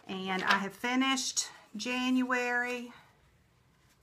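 A middle-aged woman speaks with animation, close to the microphone.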